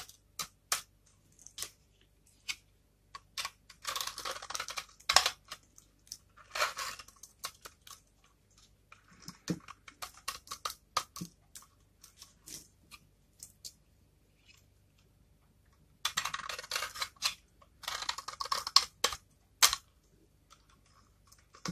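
A knife blade scrapes and shaves crisp flakes off a bar of soap, close up.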